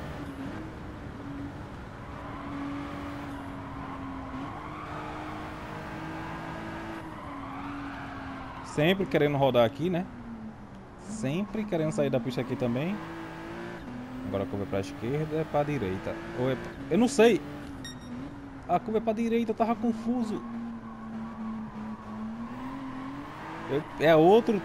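A racing car engine drones steadily, its pitch rising and falling as the car speeds up and slows down.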